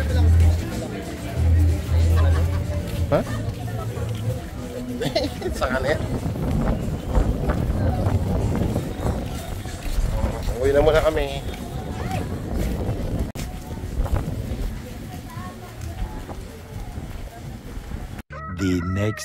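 A lively crowd chatters outdoors.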